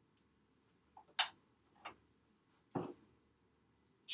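A marker clacks down onto a metal tray.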